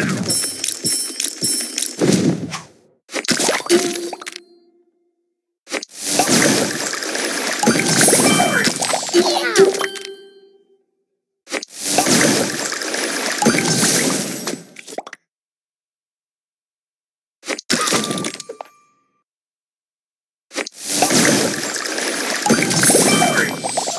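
Game candies pop and chime as they burst.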